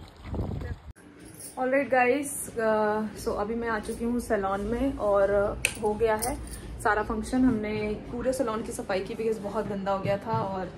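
A young woman talks calmly and close up.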